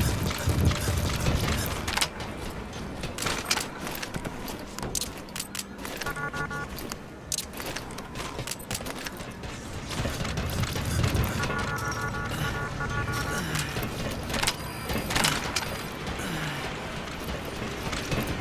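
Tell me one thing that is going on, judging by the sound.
Footsteps run quickly on a hard metal floor.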